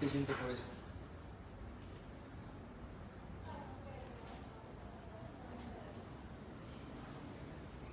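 A paintbrush brushes softly on canvas.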